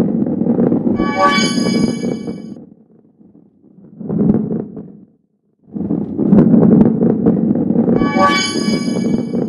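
A bright chime rings out as the ball passes through a ring.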